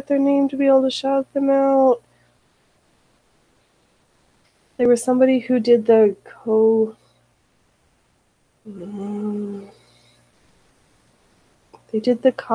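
A woman talks calmly into a close microphone, in short bursts with pauses.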